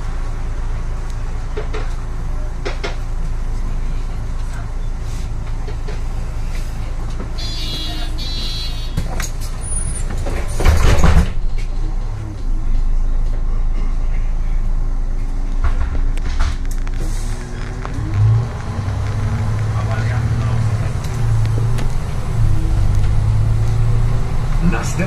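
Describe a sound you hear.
A bus engine hums steadily from inside the moving bus.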